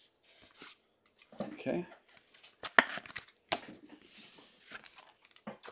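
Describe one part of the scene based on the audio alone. A plastic card sleeve crinkles and rustles as it is handled up close.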